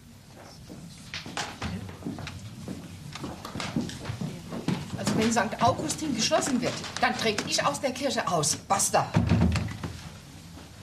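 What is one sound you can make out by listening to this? A group of men and women chatter and talk over one another indoors.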